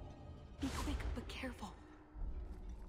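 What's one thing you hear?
A puff of smoke bursts with a whoosh.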